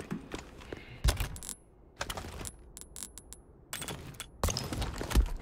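Game menu sounds chime and click.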